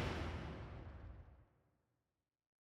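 Game music fades out to silence.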